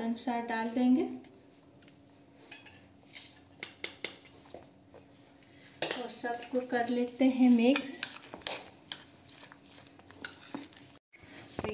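A metal spoon scrapes and clinks against a steel bowl.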